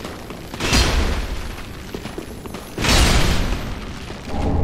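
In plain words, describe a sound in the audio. A sword swings through the air with heavy whooshing slashes.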